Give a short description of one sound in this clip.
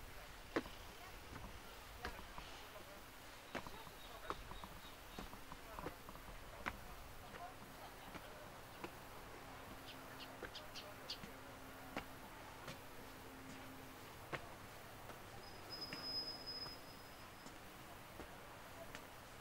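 Footsteps thud on wooden steps, climbing at a steady pace.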